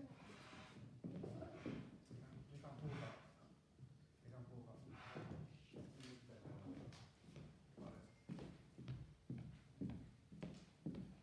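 A woman speaks calmly in an echoing hall.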